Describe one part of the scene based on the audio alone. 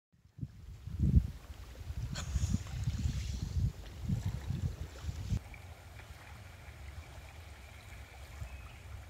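Small waves lap gently at a pebbly shore.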